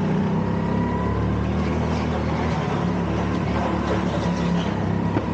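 Go-kart tyres rumble over a smooth track.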